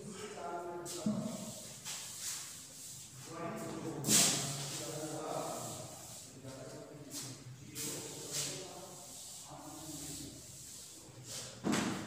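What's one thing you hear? A duster rubs on a blackboard.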